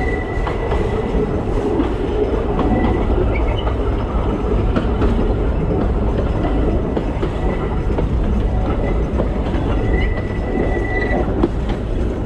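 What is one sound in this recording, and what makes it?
Train wheels squeal faintly on a curve.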